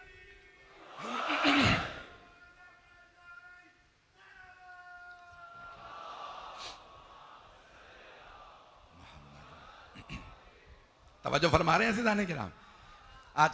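A large crowd of men cries out together.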